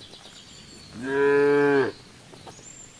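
A cow moos loudly.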